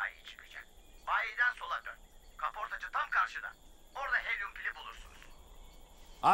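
A boy speaks rapidly in a high, excited voice.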